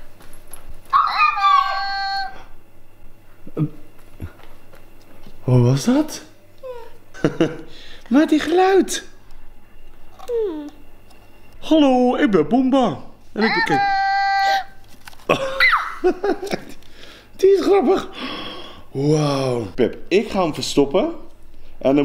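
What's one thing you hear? A toddler shouts and babbles excitedly close by.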